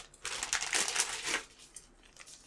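Plastic parts rustle and click as they are handled close by.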